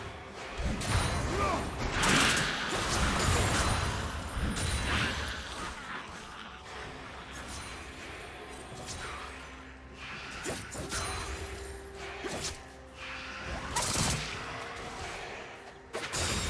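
Magic blasts and clashing weapons burst out in a busy fight.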